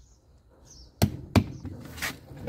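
Hands slap a rubber tyre with dull thumps.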